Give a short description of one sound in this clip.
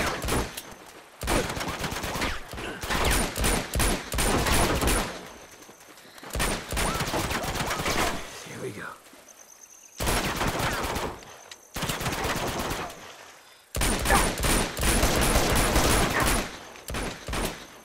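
Pistol shots crack in rapid bursts.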